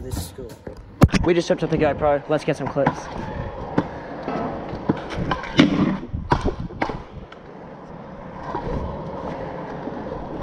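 Scooter wheels roll and rattle over concrete.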